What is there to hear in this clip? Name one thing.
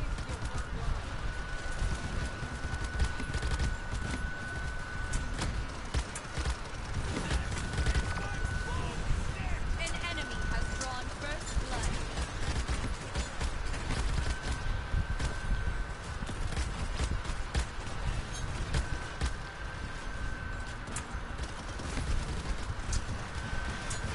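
A beam weapon hums and crackles as it fires.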